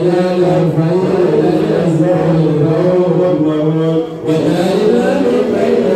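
A young man chants in a long, melodic voice through a microphone, with a brief pause for breath.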